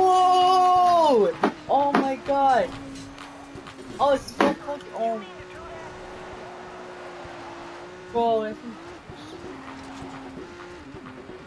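A racing car engine whines, dropping and rising in pitch.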